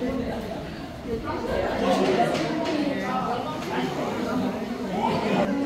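A crowd of women chatters loudly in an echoing hall.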